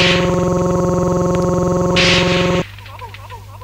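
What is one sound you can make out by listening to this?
Loud electronic dance music plays with a pounding beat.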